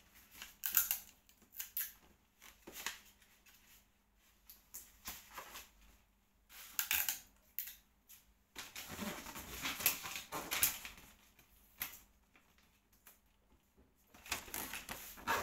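Wrapping paper crinkles and rustles as it is torn open close by.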